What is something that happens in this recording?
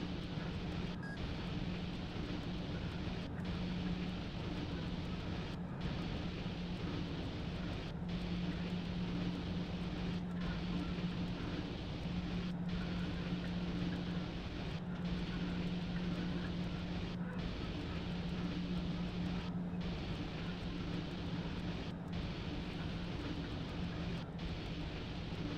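Train wheels rumble steadily along the rails.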